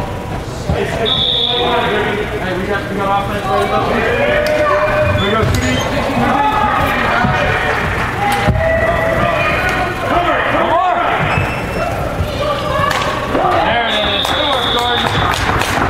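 A referee's whistle blows sharply in a large echoing indoor hall.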